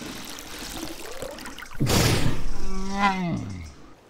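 Water drips and splashes from a large animal's mouth into a river.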